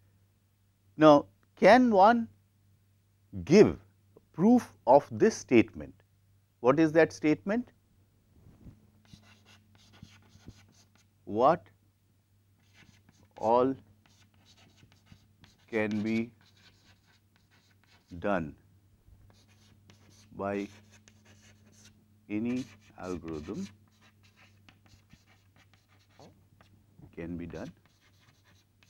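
A middle-aged man speaks in short, emphatic phrases with pauses, close to a microphone.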